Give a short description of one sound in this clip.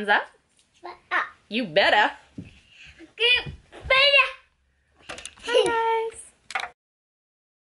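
A small boy laughs and shouts excitedly.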